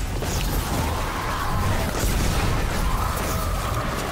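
A large explosion bursts with a loud blast.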